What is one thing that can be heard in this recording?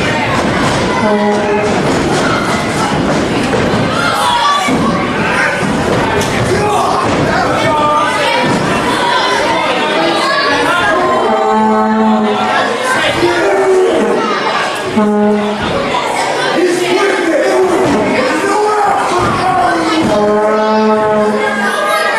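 A crowd cheers and chants loudly in an echoing hall.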